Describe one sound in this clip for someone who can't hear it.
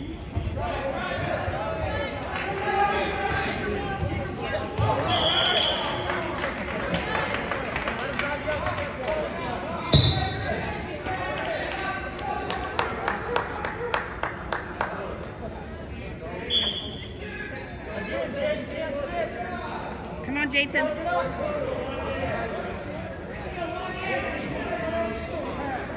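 Men shout encouragement loudly in an echoing hall.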